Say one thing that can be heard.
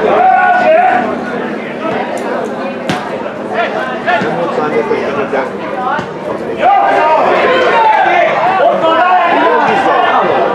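Men shout to each other across an open pitch.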